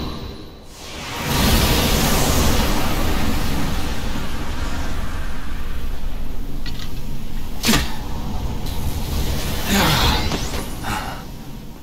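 A deep, rushing roar of swirling dark energy swells and rumbles.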